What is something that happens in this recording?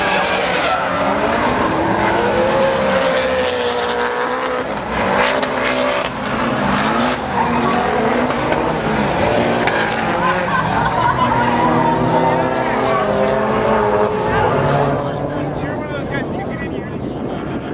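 Car engines roar and rev.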